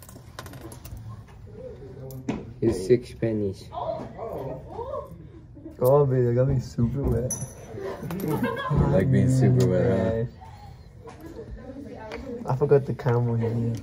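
Teenage boys talk and laugh with animation close by.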